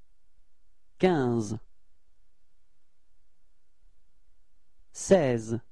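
A young man speaks calmly, close to a microphone, in two short phrases.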